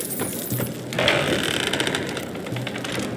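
A heavy wooden door swings open with a rush.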